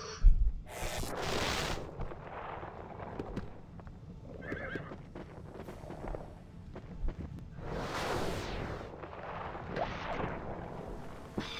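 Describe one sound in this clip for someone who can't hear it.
A fiery spell bursts with a loud whoosh.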